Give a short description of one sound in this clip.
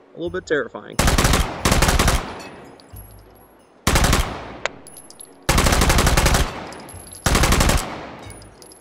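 A submachine gun fires loud bursts with a ringing echo.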